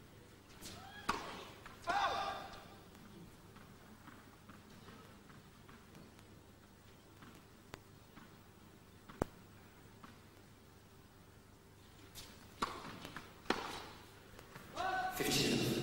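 Tennis rackets strike a ball back and forth.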